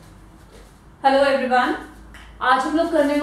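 A young woman speaks clearly and calmly, close to a microphone.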